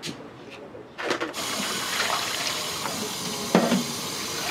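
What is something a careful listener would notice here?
Water sloshes as hands wash things in a metal tub.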